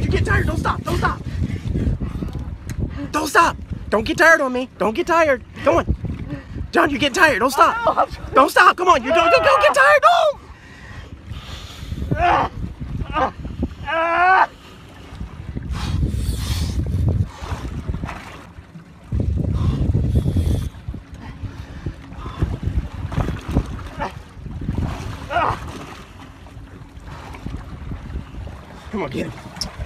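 Wind blows past outdoors on open water.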